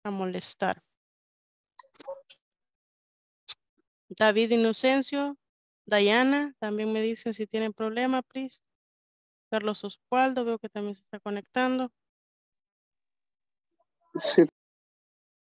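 A woman speaks calmly, heard through an online call.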